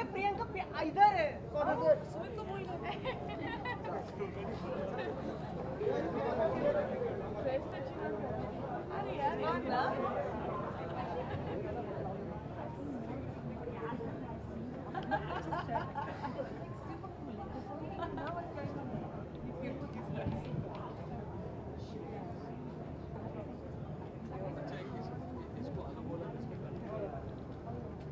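Two young women talk with animation close by.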